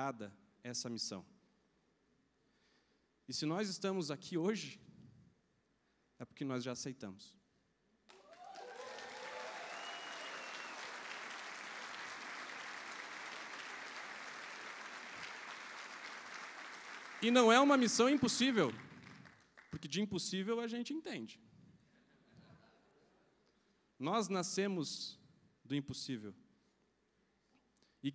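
A man speaks with animation through a microphone and loudspeakers in a large hall.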